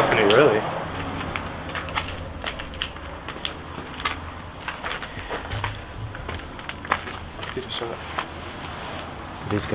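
Footsteps crunch and scrape over loose rubble.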